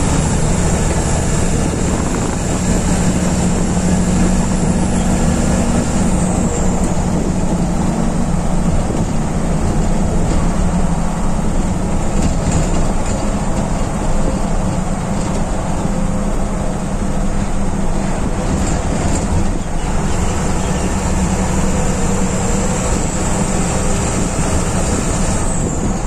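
Wind and road noise rush past the moving bus.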